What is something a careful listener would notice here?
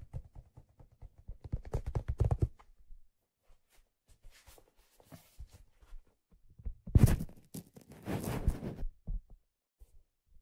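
Fingers tap and rub a hollow metal object close to a microphone.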